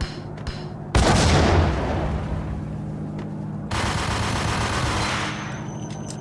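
A submachine gun fires in loud bursts.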